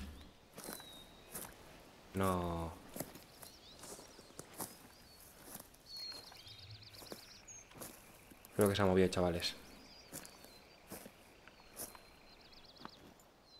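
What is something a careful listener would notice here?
Footsteps swish through grass and low plants.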